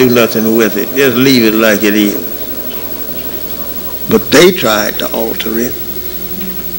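An elderly man speaks with emphasis into a microphone in an echoing hall.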